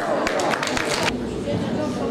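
An elderly woman speaks into a microphone, heard over loudspeakers in a large hall.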